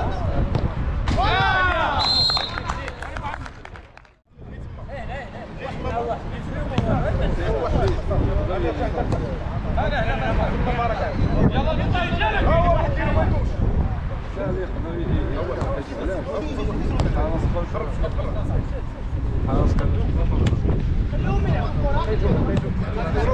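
Men shout and call to each other outdoors.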